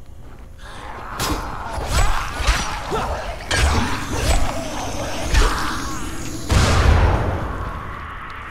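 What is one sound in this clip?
Heavy blows thud and squelch as a zombie is struck.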